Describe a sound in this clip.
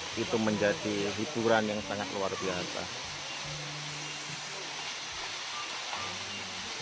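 Water from a waterfall pours and splashes steadily onto rocks.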